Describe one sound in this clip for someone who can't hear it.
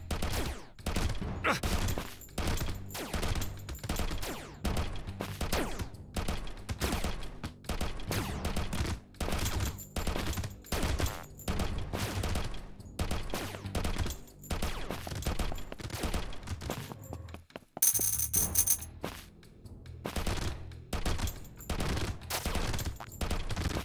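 Video game gunfire rattles rapidly.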